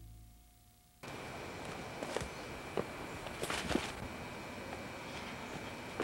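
Footsteps crunch on leaves.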